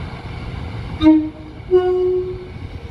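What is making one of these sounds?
A diesel train's horn sounds two short blasts.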